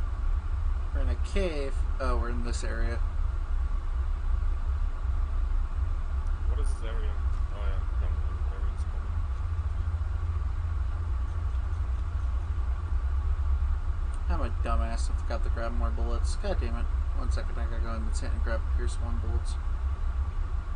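A man talks casually into a microphone, in short bursts.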